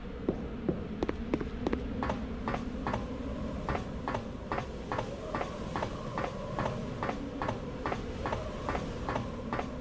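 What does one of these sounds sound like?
Footsteps walk steadily on a hard floor.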